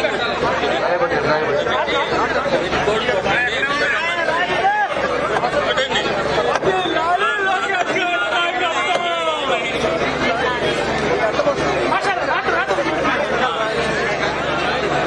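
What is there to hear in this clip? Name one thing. A dense crowd of men and women chatter and shout all around, close by.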